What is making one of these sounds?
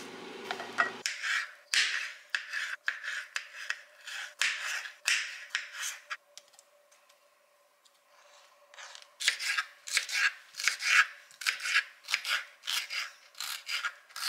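A knife chops on a cutting board in quick taps.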